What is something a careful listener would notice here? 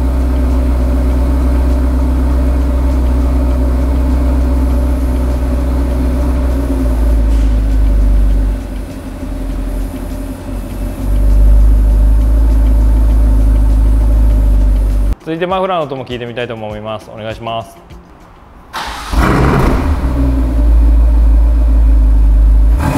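A sports car engine idles with a deep, steady rumble close by.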